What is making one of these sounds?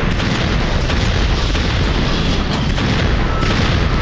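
A fireball explodes with a roar.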